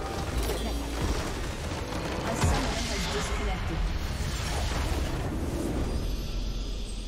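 A large crystal structure shatters and explodes with a loud crash.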